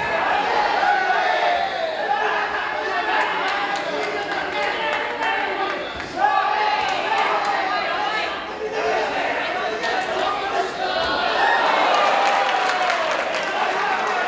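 A crowd in a large hall shouts and cheers.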